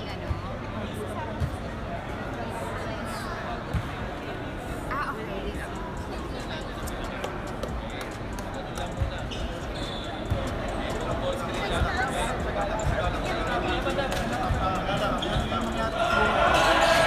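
Other voices murmur nearby.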